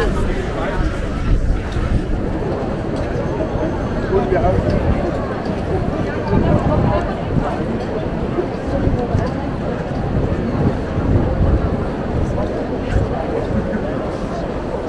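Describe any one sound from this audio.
Footsteps shuffle on stone paving.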